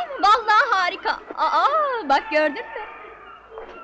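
A young woman sings loudly and brightly.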